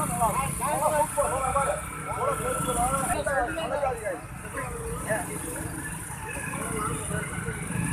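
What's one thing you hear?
Motorcycle and vehicle engines idle and rumble nearby.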